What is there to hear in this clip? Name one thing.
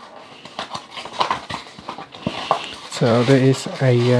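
Paper rustles and crinkles as a sheet is pulled from a box.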